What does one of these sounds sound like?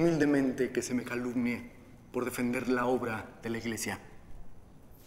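A man speaks warmly and gently, close by.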